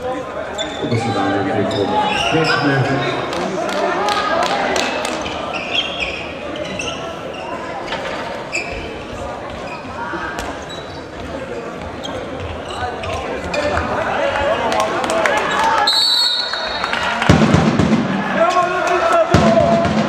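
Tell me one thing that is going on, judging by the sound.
A crowd of spectators murmurs and shouts throughout.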